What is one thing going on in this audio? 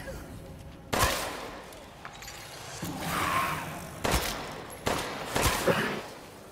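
A pistol fires several sharp shots that echo in a stone tunnel.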